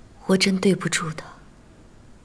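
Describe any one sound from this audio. A young woman speaks softly and sadly, close by.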